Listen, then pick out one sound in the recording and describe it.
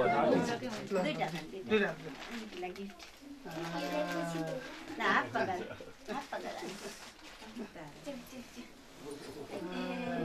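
A young girl speaks nearby.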